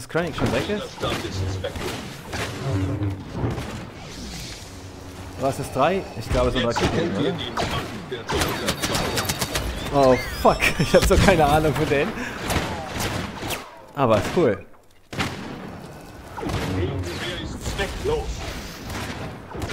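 A lightsaber hums and swooshes.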